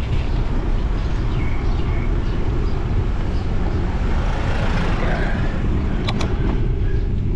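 A car approaches and passes close by.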